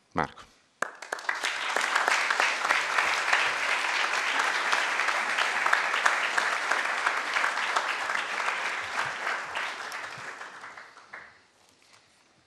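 An audience applauds loudly, then the clapping fades.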